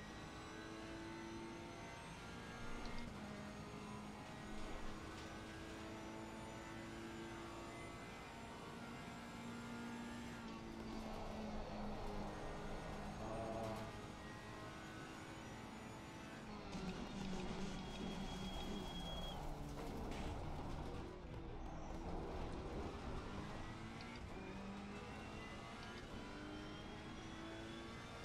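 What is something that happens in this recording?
A racing car engine roars and rises and falls in pitch as it shifts gears.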